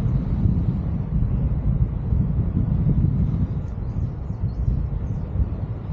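Strong wind rushes and buffets loudly outdoors.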